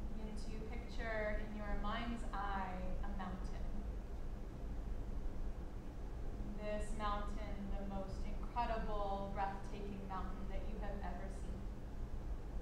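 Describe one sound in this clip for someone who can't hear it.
A woman speaks calmly and slowly.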